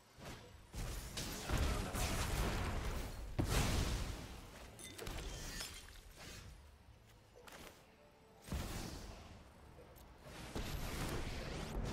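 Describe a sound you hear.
Magical sound effects whoosh and rumble.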